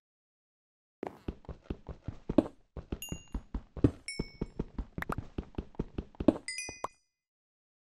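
A pickaxe chips rapidly at stone, with blocks crumbling.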